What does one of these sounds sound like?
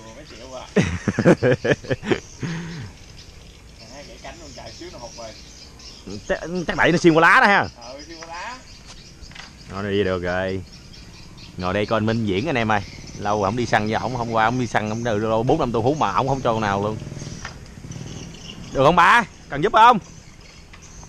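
A man talks loudly nearby, outdoors.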